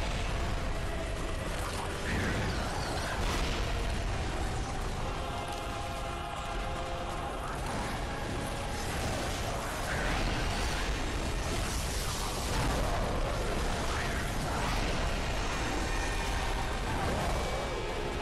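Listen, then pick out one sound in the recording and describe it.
Creatures screech and wail.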